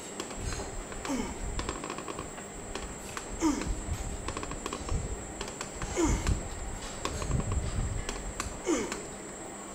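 A gym machine squeaks with each lift.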